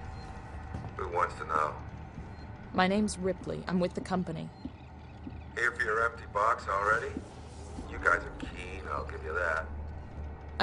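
A man speaks calmly and wearily.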